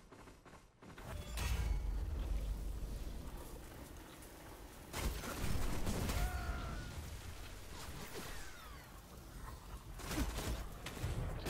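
Fiery blasts roar and crackle.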